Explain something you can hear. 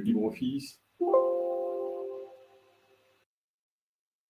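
A computer alert chime rings once and fades.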